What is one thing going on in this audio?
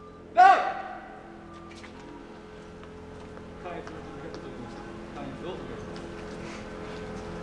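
A man speaks formally into a microphone, heard through loudspeakers outdoors with echo.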